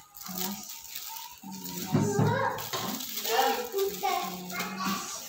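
Plastic wrappers crinkle as packaged pastries are handled.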